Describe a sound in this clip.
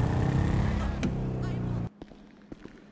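A motorbike engine roars at speed.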